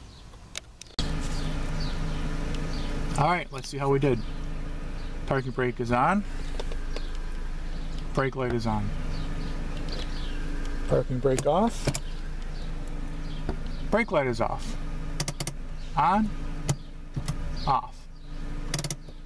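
A car engine starts and idles with a steady hum.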